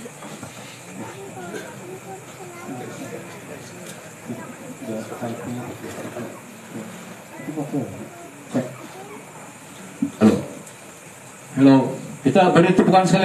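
People chatter quietly nearby.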